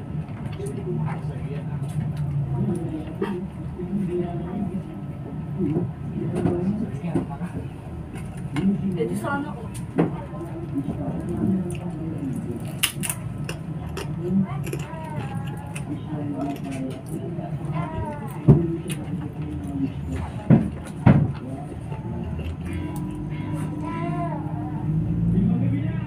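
A woman chews food noisily close to the microphone.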